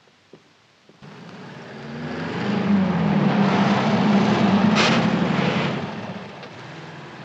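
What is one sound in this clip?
A car engine hums as the car drives past.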